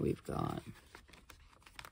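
A sticker peels off a backing sheet.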